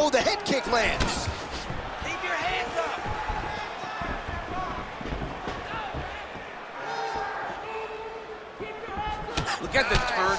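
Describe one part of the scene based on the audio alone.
A kick thuds against a body.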